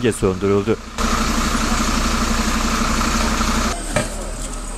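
A diesel fire engine idles close by.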